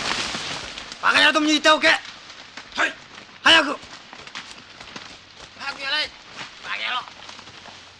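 A man shouts commands loudly outdoors.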